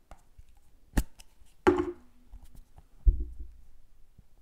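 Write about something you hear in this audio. A plastic lid clicks and thuds as it is handled.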